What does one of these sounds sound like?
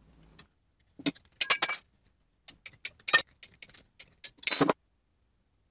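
Tin snips clip sheet metal with sharp snaps.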